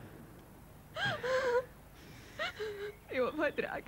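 A woman speaks in a tearful, emotional voice close by.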